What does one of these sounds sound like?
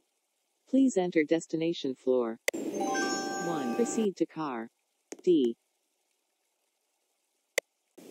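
A keypad beeps as buttons are pressed.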